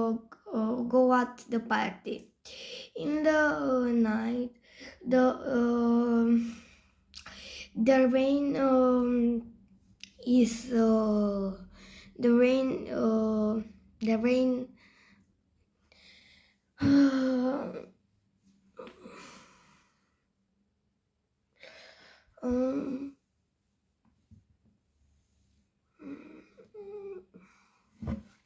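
A girl talks calmly close to a phone microphone, with pauses.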